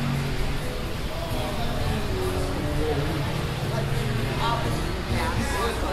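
Men and women chat casually nearby outdoors.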